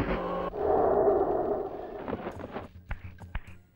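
A blade clangs and sparks crackle as it strikes.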